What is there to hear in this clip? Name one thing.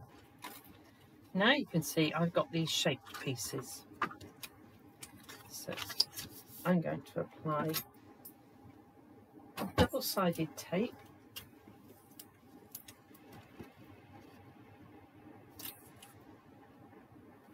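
Paper rustles and crinkles as it is handled and folded.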